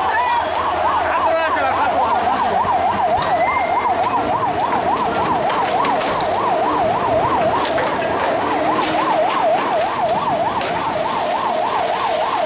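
A siren wails rapidly and steadily.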